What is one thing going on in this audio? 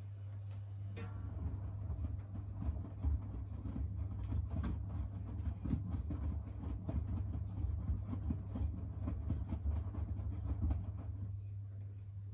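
Laundry tumbles and thumps inside a spinning washing machine drum.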